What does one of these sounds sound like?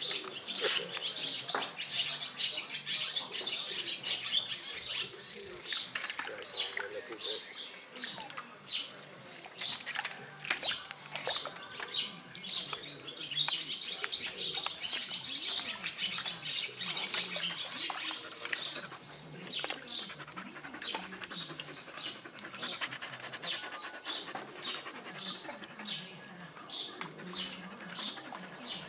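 Water splashes and sloshes in a shallow tray as puppies paw at it.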